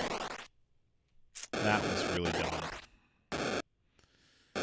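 Electronic video game sound effects buzz in short bursts.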